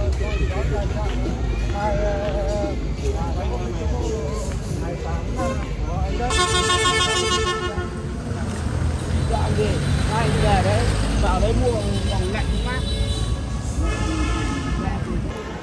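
Street traffic rumbles steadily.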